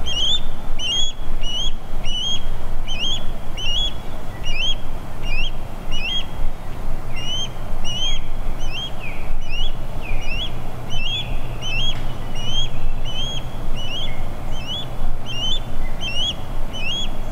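An osprey gives repeated sharp, high whistling chirps.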